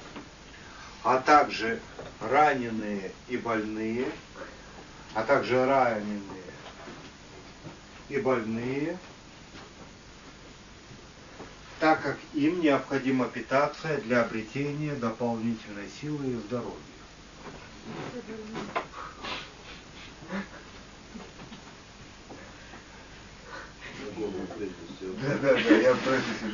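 A man reads aloud from a book in a slow, chanting voice.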